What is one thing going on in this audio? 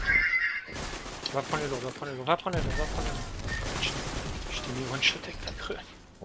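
A rifle fires sharp shots in bursts.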